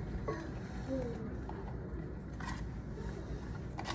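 Sliced fruit slides out of a plastic container into a bowl.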